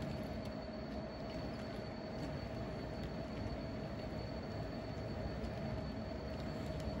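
A model train rumbles steadily along its track.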